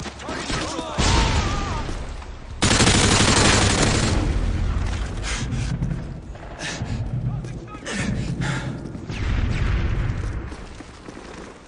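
Loud explosions boom and crackle one after another.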